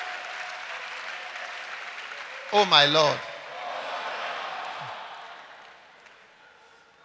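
An audience laughs and murmurs in a large echoing hall.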